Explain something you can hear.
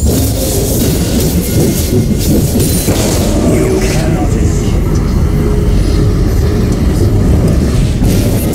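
Game spell effects whoosh and crackle.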